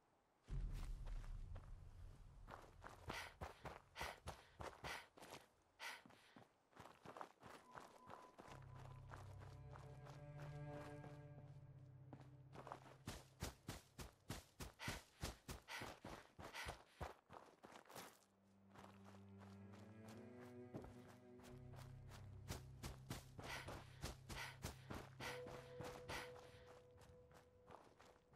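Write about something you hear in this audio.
Footsteps crunch steadily over gravel and dirt.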